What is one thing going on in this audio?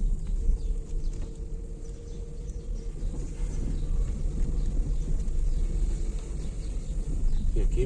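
Tyres crunch and rumble over a bumpy dirt road.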